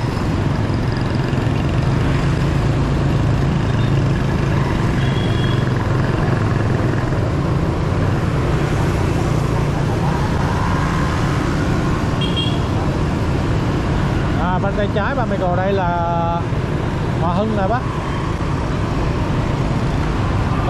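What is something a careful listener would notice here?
A motorbike engine hums steadily up close.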